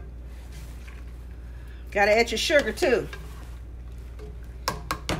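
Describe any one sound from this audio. A spoon stirs a thick stew in a metal pot.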